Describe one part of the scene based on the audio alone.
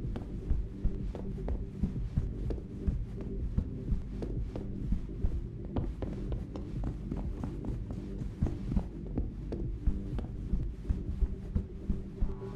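Footsteps thud steadily up stairs and along a carpeted floor.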